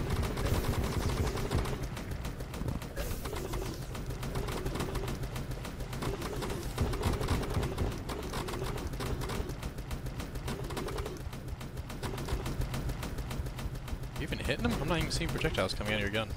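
Hits thud and crackle against a large creature.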